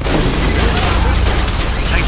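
A flamethrower roars with a rushing blast of fire.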